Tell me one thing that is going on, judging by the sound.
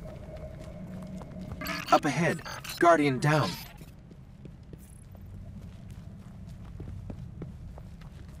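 Footsteps crunch softly over rocky ground.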